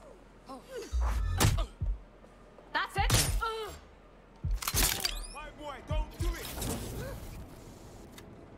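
An electric stun gun fires with loud crackling zaps.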